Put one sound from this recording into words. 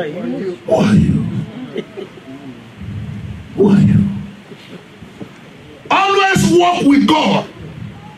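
A man preaches into a microphone with passion, his voice rising to loud shouts.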